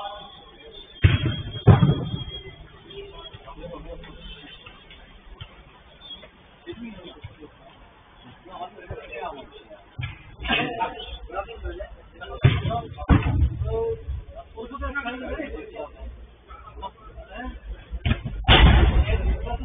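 A football thuds against a boot as it is kicked in a large echoing hall.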